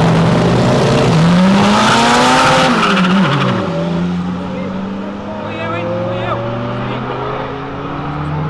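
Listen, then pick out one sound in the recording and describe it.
Car engines rise in pitch and shift gears as the cars speed off.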